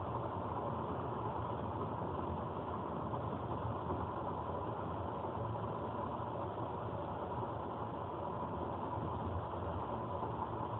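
Tyres roll on the road with a steady roar.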